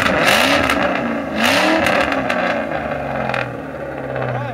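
A car engine revs loudly through its exhaust, then settles.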